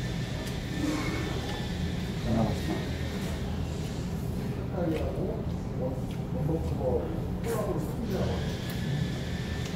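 A man talks casually, close by.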